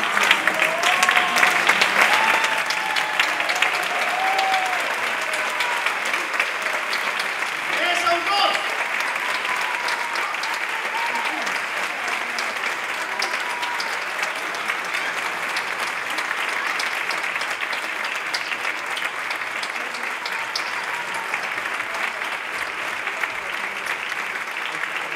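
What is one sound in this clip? An audience claps loudly in a large hall.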